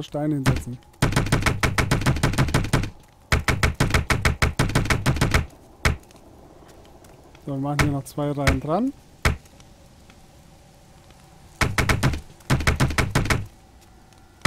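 Rapid knocking of stone blocks being chipped comes in bursts.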